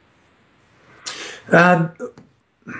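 A middle-aged man speaks briefly and calmly, close to a microphone.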